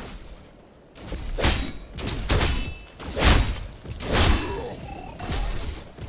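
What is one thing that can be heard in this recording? Loud energy blasts crackle and boom in quick bursts.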